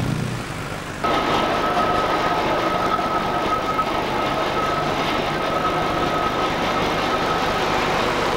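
A vehicle engine rumbles as it passes.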